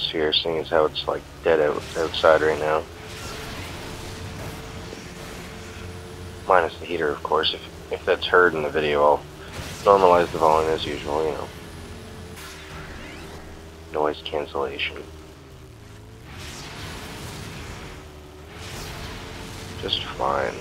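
A dune buggy engine drones at full throttle.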